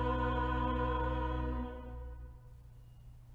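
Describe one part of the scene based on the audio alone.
An organ holds a final chord that dies away in a large echoing church.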